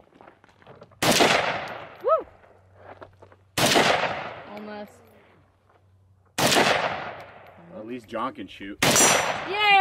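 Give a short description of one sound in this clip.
A rifle fires single loud shots outdoors, each echoing away.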